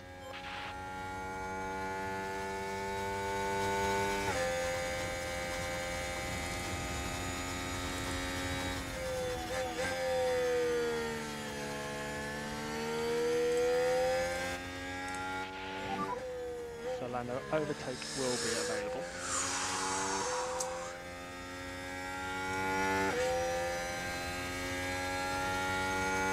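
A racing car engine roars steadily, its pitch rising and falling through gear changes.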